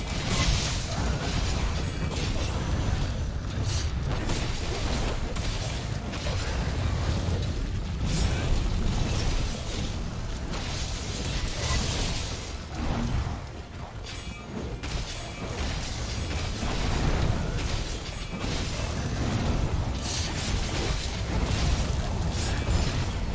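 A large monster roars.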